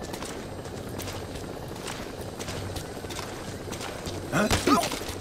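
Footsteps crunch softly on dirt.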